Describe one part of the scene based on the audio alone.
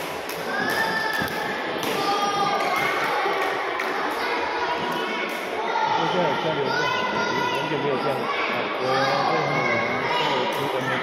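Children's voices chatter and call out across a large echoing hall.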